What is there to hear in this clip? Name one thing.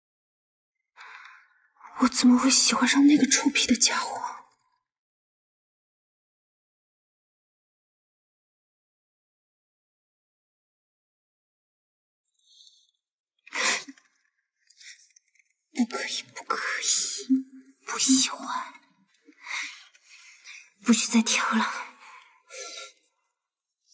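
A young woman speaks quietly and sulkily to herself, close by.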